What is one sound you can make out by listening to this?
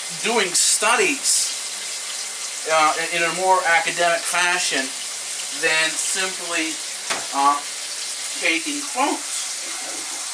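A middle-aged man talks casually nearby.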